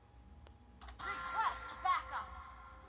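Electronic game sound effects chime and warble.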